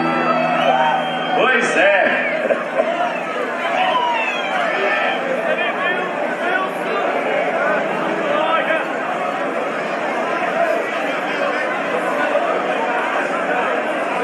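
A large crowd cheers and chatters outdoors.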